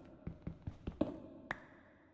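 A block breaks with a short crunching sound.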